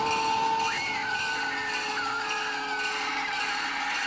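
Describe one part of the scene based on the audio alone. A young child screams loudly.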